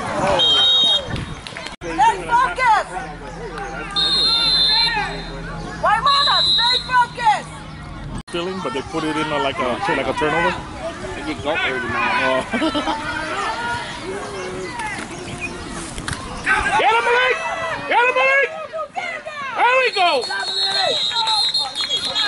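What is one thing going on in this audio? Spectators shout and cheer outdoors.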